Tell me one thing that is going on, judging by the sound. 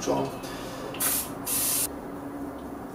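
A spray can hisses briefly.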